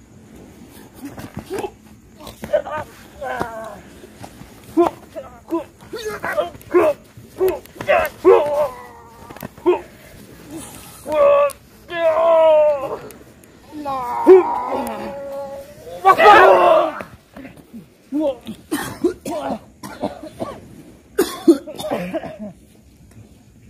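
Young men shout and whoop with excitement close by.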